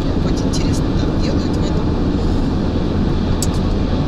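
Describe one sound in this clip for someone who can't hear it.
A man and a woman talk with animation inside a car.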